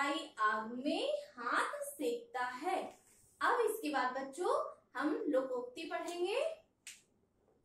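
A young woman speaks clearly and calmly, as if teaching.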